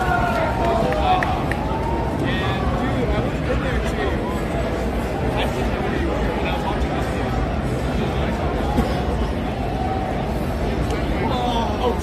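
A crowd of people chatters nearby in a busy, echoing hall.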